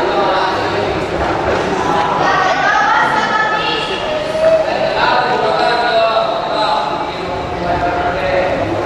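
Young actors speak loudly on a stage, heard through a hall's loudspeakers.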